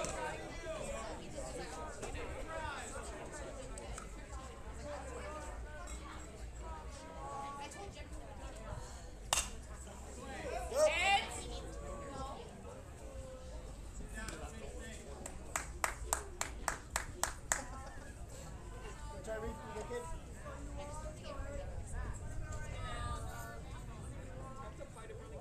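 Boys and men chatter at a distance outdoors.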